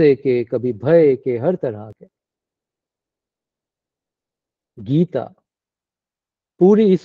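A man speaks calmly and with pauses, heard through an online call.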